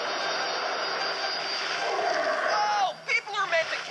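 Water splashes loudly as a large fish leaps out.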